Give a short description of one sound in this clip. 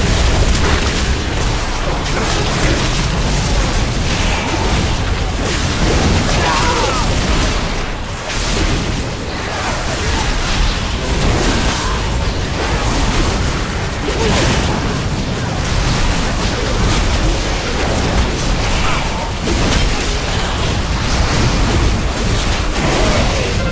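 Magic spells crackle and boom in a hectic battle.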